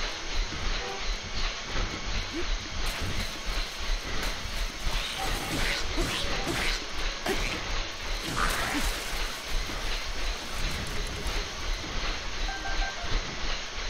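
Footsteps thud steadily on a treadmill.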